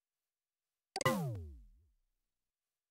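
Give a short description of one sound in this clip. A low electronic tone swoops down and fades.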